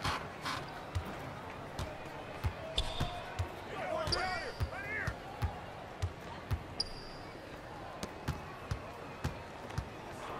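A basketball bounces steadily on a hard court.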